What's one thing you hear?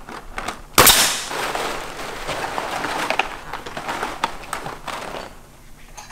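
A stiff plastic sheet crinkles and rustles under a hand.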